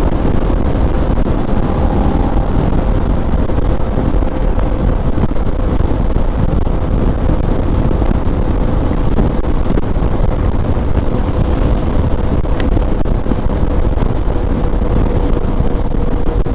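Wind roars loudly and steadily.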